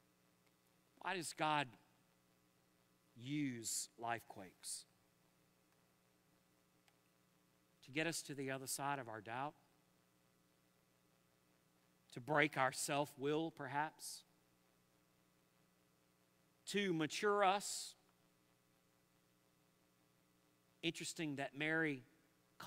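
A middle-aged man preaches into a microphone in short, emphatic bursts with pauses between.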